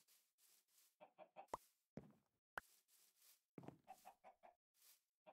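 A chicken clucks nearby.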